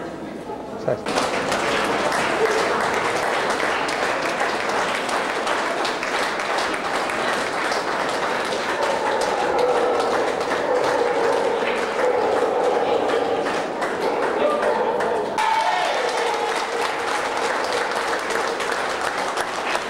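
An audience claps and applauds loudly in a large echoing hall.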